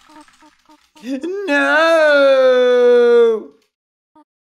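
A young man yells a long, drawn-out cry, close to a microphone.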